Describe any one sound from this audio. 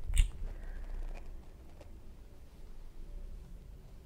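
A middle-aged woman speaks softly, close to a microphone.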